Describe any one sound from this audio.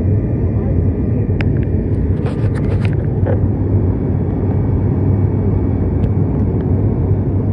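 A propeller plane's engines drone loudly and steadily.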